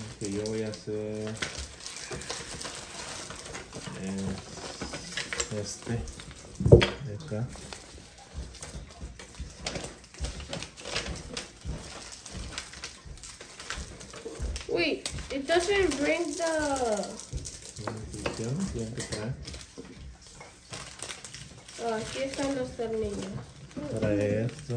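Paper cards rustle and flap in hands.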